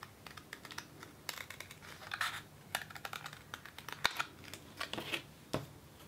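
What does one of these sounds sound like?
Scissors snip through thin card in quick crisp cuts.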